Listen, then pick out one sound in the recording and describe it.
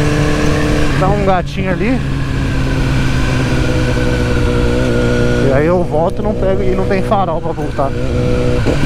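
A motorcycle engine revs sharply in quick bursts as gears shift.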